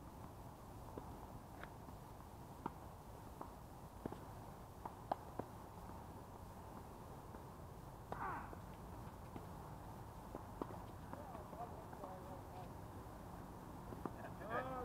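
Tennis balls are struck with rackets, with sharp pops echoing across open courts.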